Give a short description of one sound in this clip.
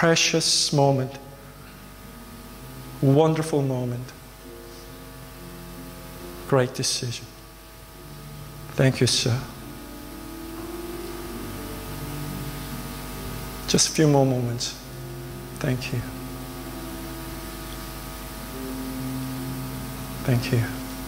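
A young man speaks calmly in short phrases through a microphone and loudspeakers in a large hall.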